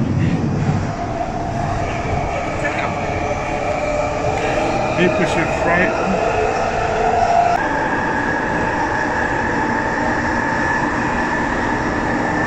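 A subway train's motor whines in a rising, then steady tone.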